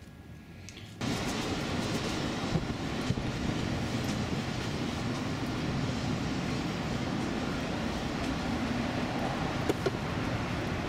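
Traffic hums steadily outdoors.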